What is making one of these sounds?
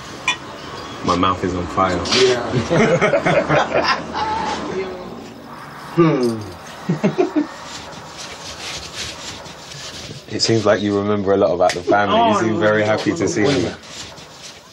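Men talk and laugh together nearby.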